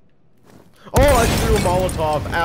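A loud explosion booms and crackles nearby.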